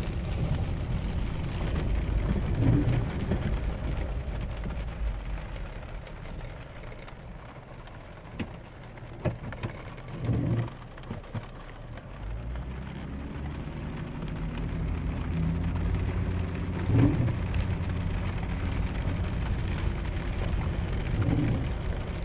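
Raindrops patter on a windshield.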